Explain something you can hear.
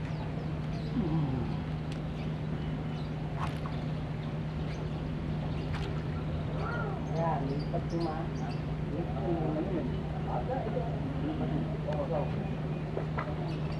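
A fishing reel whirs as line is wound in.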